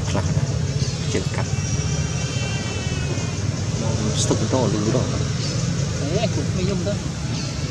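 A baby monkey squeals in short high cries.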